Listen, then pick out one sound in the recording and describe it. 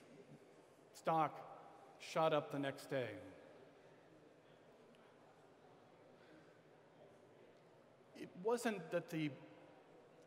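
A middle-aged man speaks with animation through a microphone in a large hall, with pauses between phrases.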